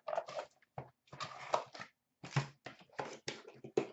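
A stack of cards is set down on a glass shelf.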